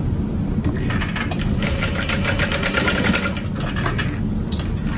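A sewing machine runs and stitches rapidly.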